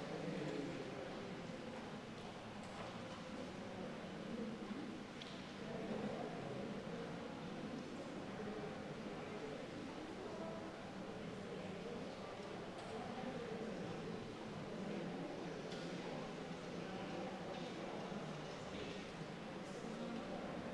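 A crowd of people murmurs quietly in an echoing hall.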